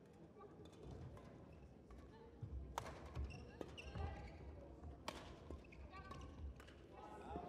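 A racket strikes a shuttlecock with sharp pops.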